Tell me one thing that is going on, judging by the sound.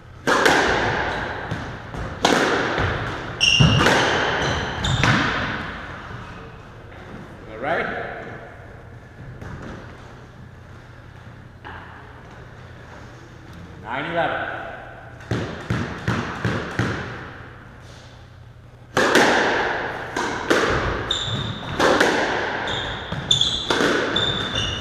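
A squash ball smacks hard against the walls, echoing around a hard-walled court.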